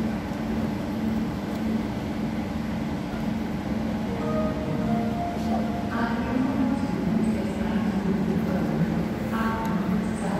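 Voices of a crowd murmur in a large echoing hall.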